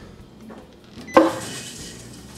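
A dishwasher button clicks.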